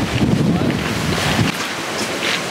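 Wind blows hard against the microphone.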